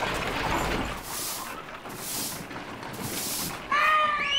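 A broom sweeps across stone with slow, scratchy strokes.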